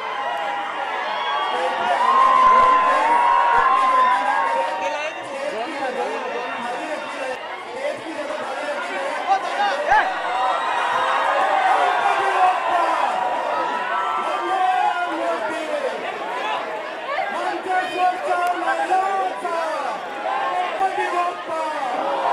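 A large crowd of men and women shouts and cheers excitedly close by.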